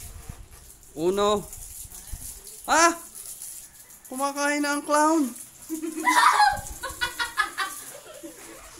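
Children laugh and shout excitedly close by.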